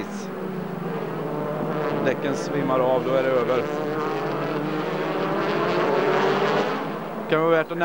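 A racing car engine revs up and down through the gears.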